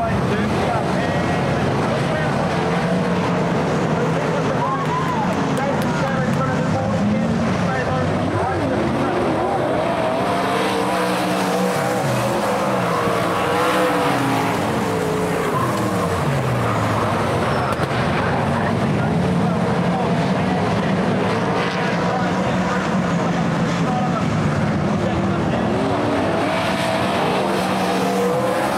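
Loud racing engines roar and whine as cars speed past, rising and falling in pitch.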